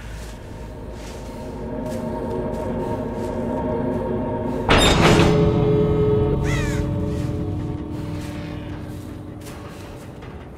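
A loud musical sting swells, then slowly fades.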